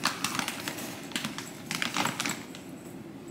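Dry food rustles as it is scooped from a bag.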